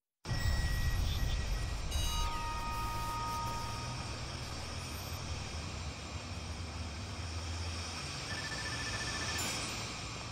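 Gas hisses from a pipe.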